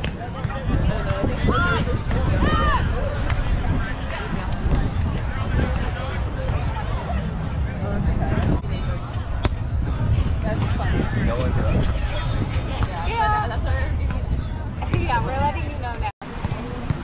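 Young women shout and call out during play.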